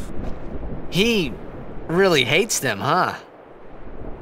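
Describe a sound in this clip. A young man asks a question in a casual voice.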